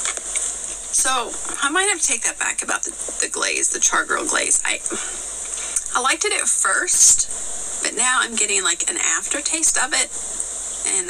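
A woman talks with animation, heard through a small loudspeaker.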